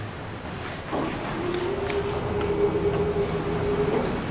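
An electric hand dryer blows with a loud, steady roar.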